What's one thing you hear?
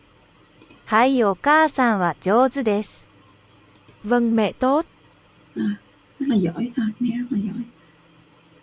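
A synthetic computer voice reads out short phrases.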